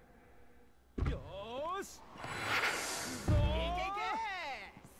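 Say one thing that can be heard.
A young man speaks cheerfully, close by.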